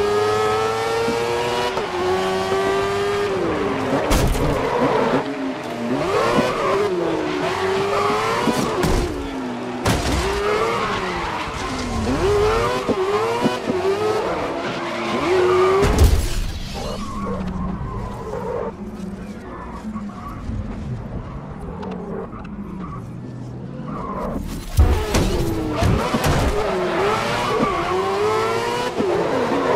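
A racing car engine screams and revs up and down through gear changes.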